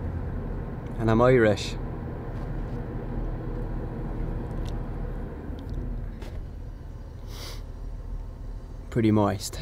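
A young man speaks in short bursts close to the microphone.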